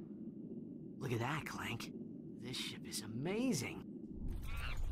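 A young man speaks with excitement.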